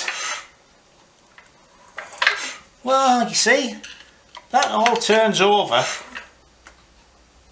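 A wrench scrapes and clicks against a metal bolt.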